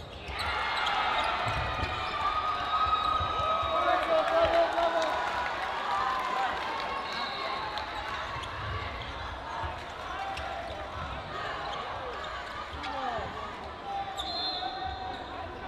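Balls bounce on a wooden court floor.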